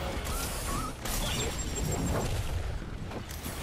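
A fiery blast bursts and roars.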